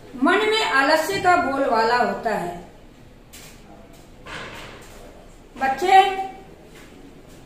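A middle-aged woman reads aloud clearly, close by.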